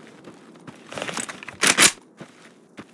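A rifle clacks sharply as it is readied.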